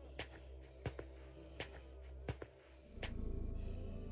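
Slow footsteps thud on a hard floor with a slight echo.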